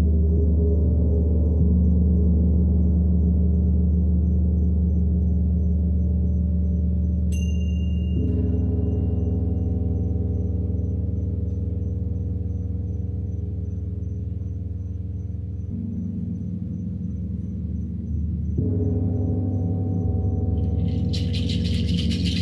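A large gong hums with a deep, rolling drone that swells with each new stroke of a soft mallet.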